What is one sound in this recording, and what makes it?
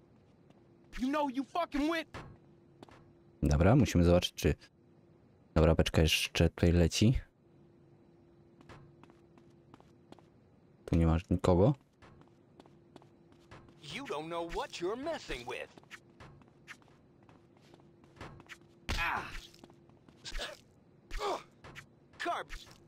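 A young man talks into a close microphone, in bursts, with animation.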